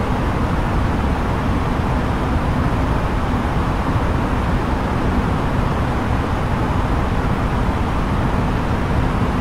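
A jet airliner's cabin roars with a steady engine and wind noise in cruise.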